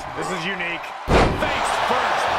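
A loud thud of a body slamming onto the ring mat.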